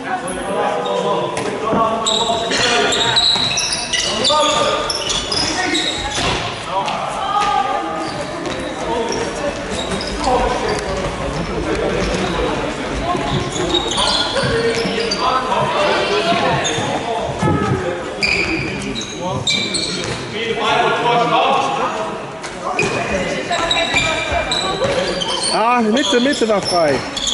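Young players shout and call out across a large echoing hall.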